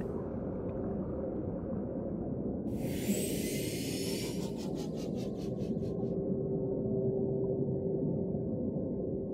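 A small submarine's engine hums low and steady underwater.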